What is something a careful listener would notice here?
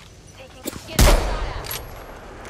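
A rifle fires a single loud shot that rings out.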